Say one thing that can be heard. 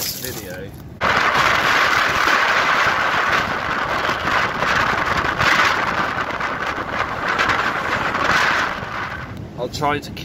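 Surf crashes and roars onto the shore.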